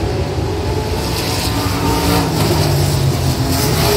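A race car engine roars past close by.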